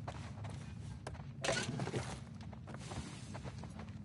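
Drawers slide and knock as they are searched.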